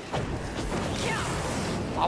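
A burst of flame roars up.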